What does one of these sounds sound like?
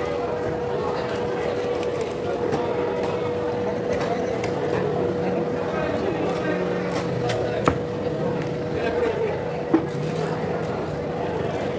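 A knife slices and chops through fish on a wooden block.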